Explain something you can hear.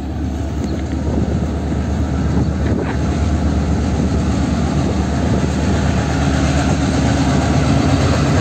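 A diesel locomotive rumbles and drones as it approaches, growing louder.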